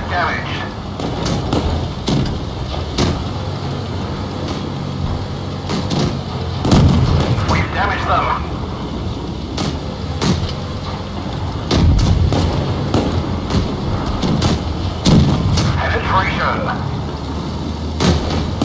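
Tank guns fire with sharp booms.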